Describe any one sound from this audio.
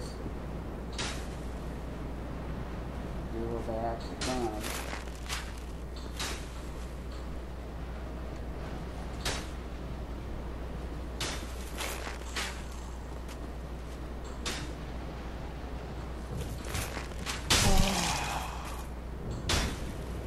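An arrow is loosed from a bow with a sharp whoosh, again and again.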